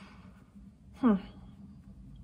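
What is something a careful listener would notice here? A young woman makes a short gliding vocal sound.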